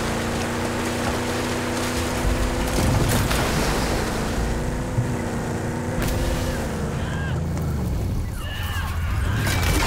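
A vehicle engine roars as it drives through water and over rough ground.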